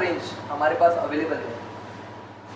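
A young man speaks close by, presenting.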